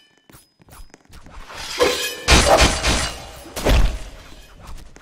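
Heavy blows and crashes land in a video game fight.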